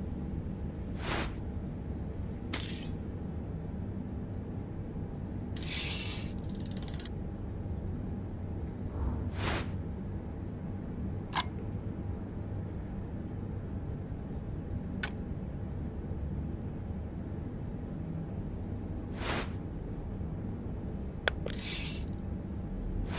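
Short electronic clicks and swishes from a game sound now and then.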